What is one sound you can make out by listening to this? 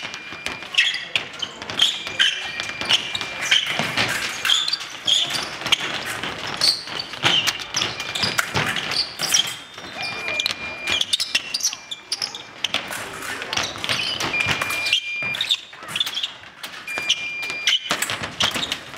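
Footsteps squeak and thud on the floor.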